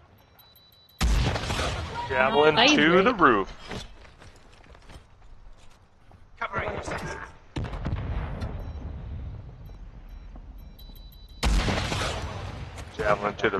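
Guns fire in a video game.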